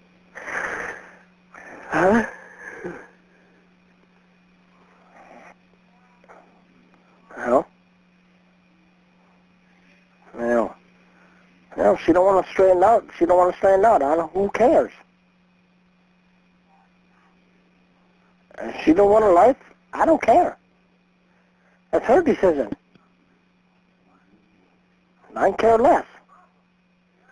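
A man talks over a phone line in short bursts.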